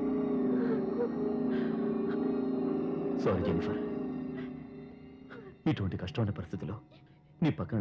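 A man speaks calmly to a woman.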